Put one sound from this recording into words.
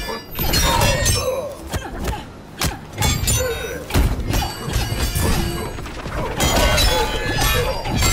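Punches and kicks land with heavy, sharp thuds.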